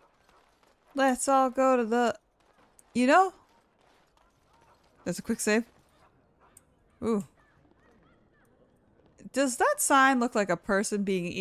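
A woman talks with animation into a close microphone.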